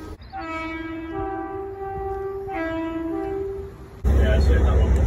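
A train horn sounds a two-tone call in the distance.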